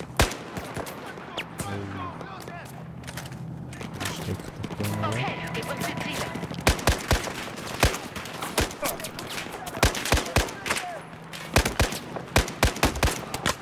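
A rifle fires in short bursts of loud shots.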